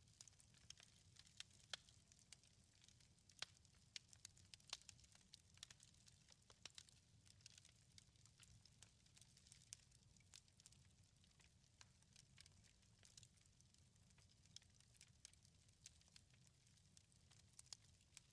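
Small stones click and tap softly against each other in a hand.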